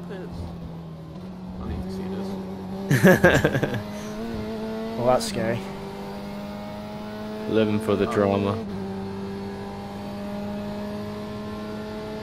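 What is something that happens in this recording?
A racing car engine drones steadily, slowly rising in pitch.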